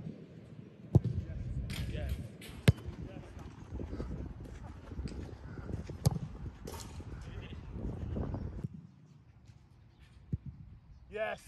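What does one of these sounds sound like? A football is kicked hard with a sharp thud.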